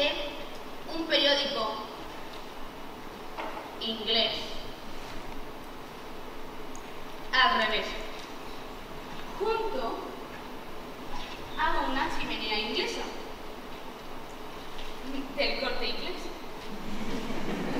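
A young man answers in an echoing hall.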